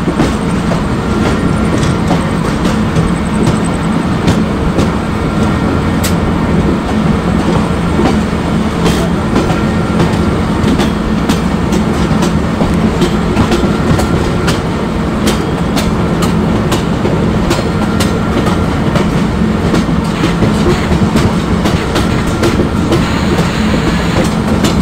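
An electric train motor hums steadily as the train runs.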